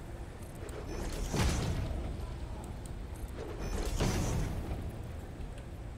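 A heavy building piece lands in place with a low whooshing thud.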